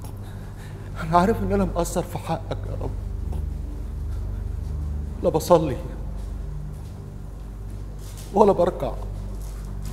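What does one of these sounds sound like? A middle-aged man speaks in a strained, tearful voice, close by.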